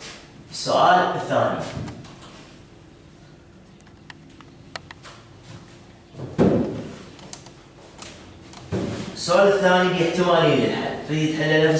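A man speaks in a lecturing tone.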